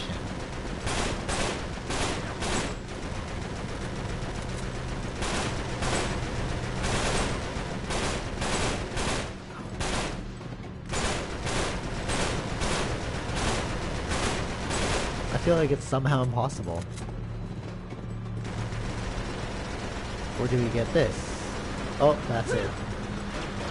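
Truck engines rumble steadily.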